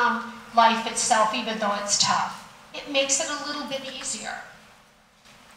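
A woman speaks with animation through a microphone in a large echoing hall.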